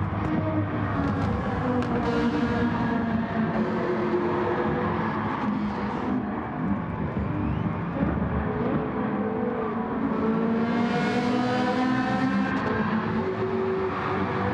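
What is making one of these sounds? Racing car engines roar loudly, their pitch rising and falling as the cars shift gears.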